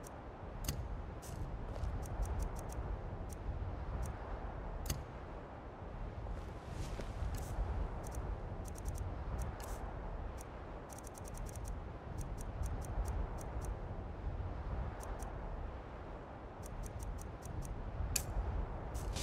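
Soft menu clicks tick in quick runs.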